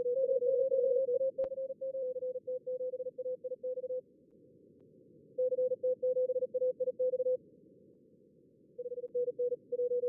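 Morse code beeps in quick bursts from a radio receiver, with short pauses between.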